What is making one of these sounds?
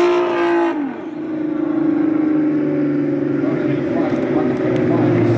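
A car engine drones steadily in the distance.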